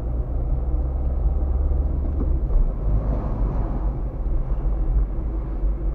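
A tram rumbles past close by.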